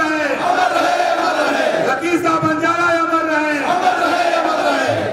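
An elderly man speaks forcefully into a microphone over a loudspeaker.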